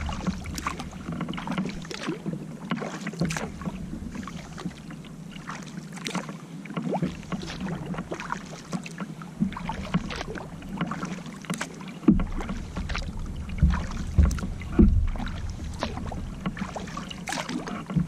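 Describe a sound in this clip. Water laps against a kayak hull.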